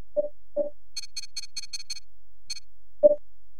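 A rapid series of high electronic ticks plays briefly.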